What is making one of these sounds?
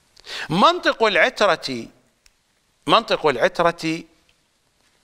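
An older man speaks with emphasis into a close microphone.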